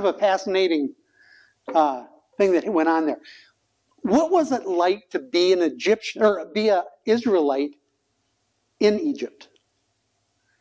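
An older man speaks calmly and with animation, close by.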